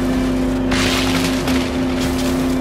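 A car crashes through tree branches with a loud crunch.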